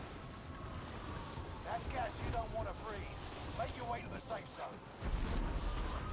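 Wind rushes past loudly during a fall through the air.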